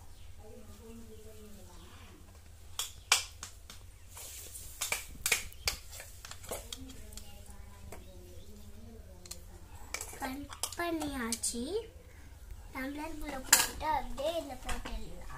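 A young child chatters and babbles nearby.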